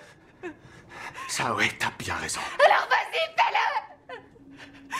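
A young woman cries out in distress close by.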